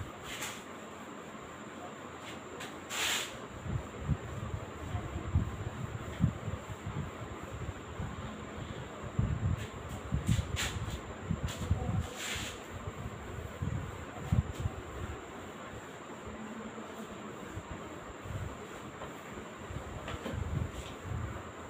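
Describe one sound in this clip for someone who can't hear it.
A duster rubs against a whiteboard.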